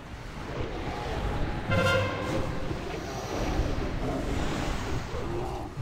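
Magic spells crackle and whoosh in a busy fight.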